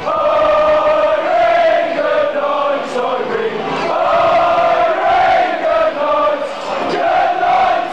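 Fans clap their hands in time.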